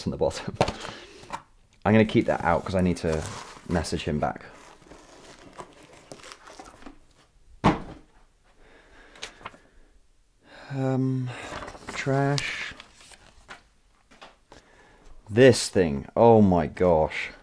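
Cardboard boxes rustle and thump as they are handled.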